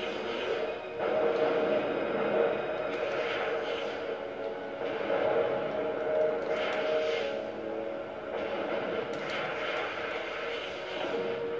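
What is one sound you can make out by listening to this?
Missiles whoosh as they fire.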